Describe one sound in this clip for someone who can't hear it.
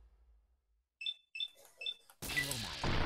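Short electronic beeps sound.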